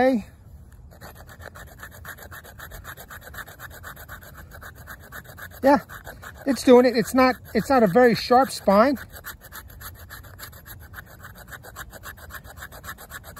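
A knife blade scrapes rapidly along a stick of wood.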